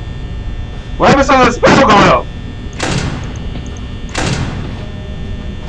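A young man shouts loudly into a nearby microphone.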